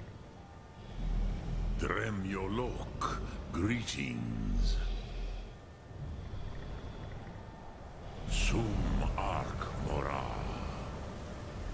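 A deep, booming creature's voice speaks slowly and menacingly.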